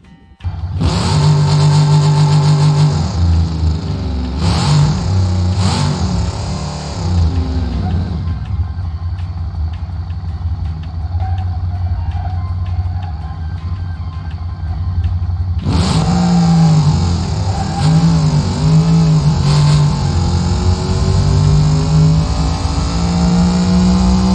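A car engine revs hard, its pitch rising as it speeds up.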